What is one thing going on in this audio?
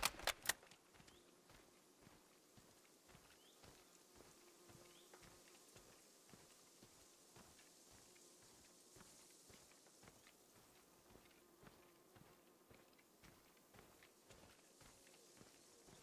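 Footsteps rustle softly through long grass.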